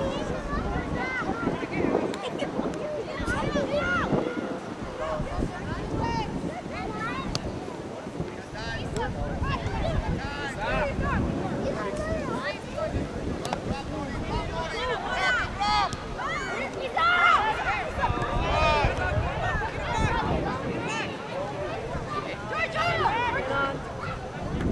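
Young women shout and call out to each other across an open field outdoors.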